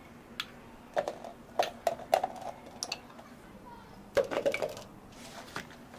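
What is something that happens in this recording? Fruit pieces drop and clatter into a plastic cup.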